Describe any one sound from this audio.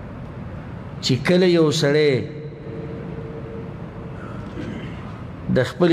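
A middle-aged man speaks into a microphone in a slow, chanting voice.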